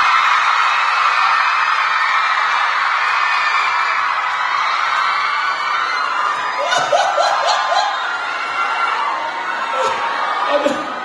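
A crowd cheers and screams loudly in a large hall.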